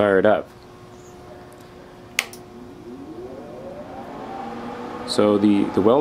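An electrical machine hums steadily.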